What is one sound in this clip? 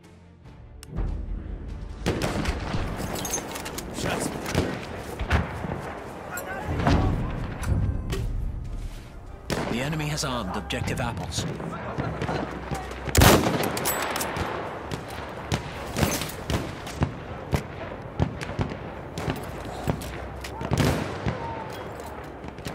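Gunfire and explosions boom in the distance.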